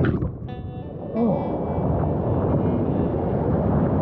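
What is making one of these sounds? Waves wash and fizz in shallow surf outdoors.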